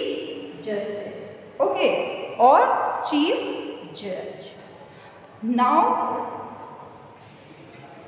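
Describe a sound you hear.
A woman speaks clearly and with animation close by.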